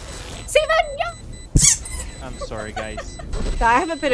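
A young woman laughs into a microphone.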